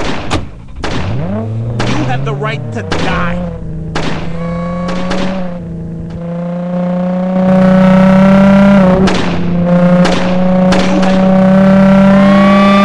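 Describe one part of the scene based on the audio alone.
A car engine in a phone game hums and revs through a small speaker.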